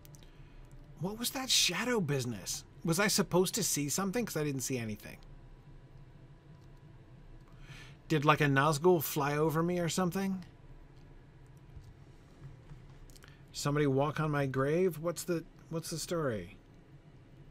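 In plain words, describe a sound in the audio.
An older man talks calmly and close to a microphone, in short bursts with pauses.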